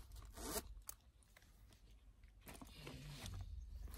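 A bag's zipper slides shut.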